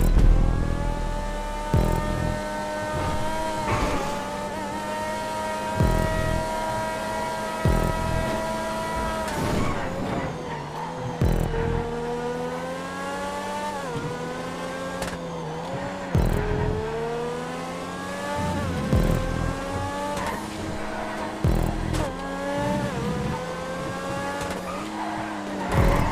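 A racing car engine roars at high revs, climbing in pitch and dropping again and again.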